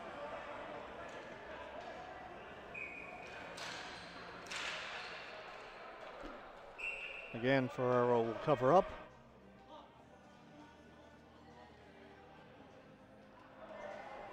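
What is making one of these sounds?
Sticks clack against a ball in an echoing arena.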